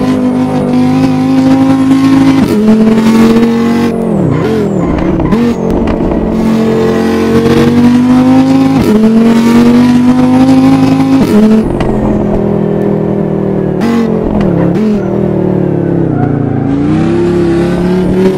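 A car engine roars at high revs, shifting gears up and down.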